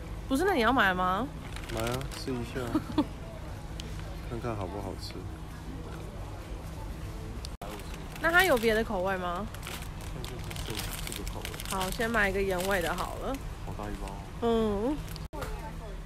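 A woman speaks casually close by.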